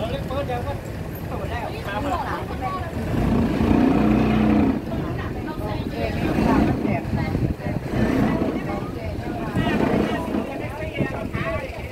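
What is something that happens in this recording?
Women and men talk casually nearby.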